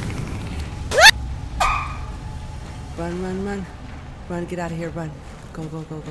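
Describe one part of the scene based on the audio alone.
A young woman exclaims and talks with surprise into a close microphone.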